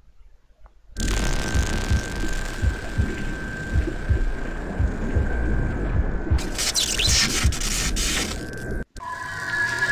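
A loud explosion rumbles and roars.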